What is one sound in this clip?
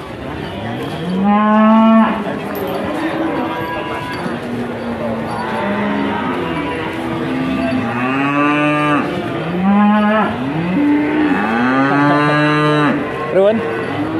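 Cattle moo loudly nearby.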